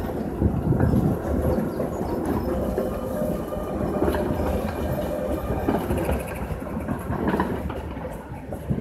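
A tram rumbles and squeals along the rails, then fades away.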